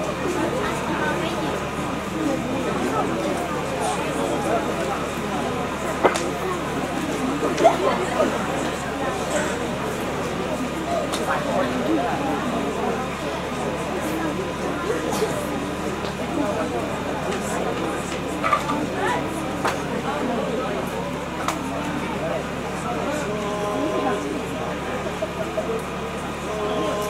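A choir of young women and men sings together through loudspeakers.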